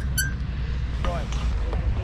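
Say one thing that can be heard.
Clothes hangers scrape along a metal rail.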